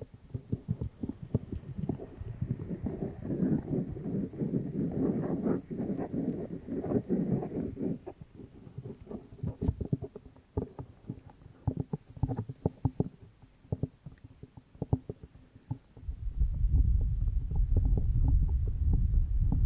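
Fingers tap and scratch on a microphone, very close.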